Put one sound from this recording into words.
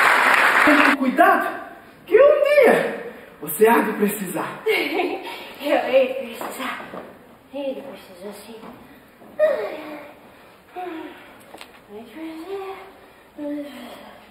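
A young woman speaks expressively in a large hall.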